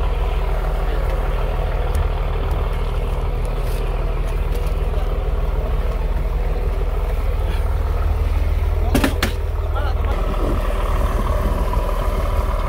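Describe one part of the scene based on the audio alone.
Water splashes against a small boat's hull.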